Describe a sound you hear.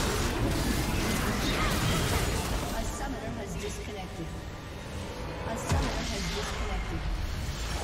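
Spell effects and blasts crackle and boom in a game fight.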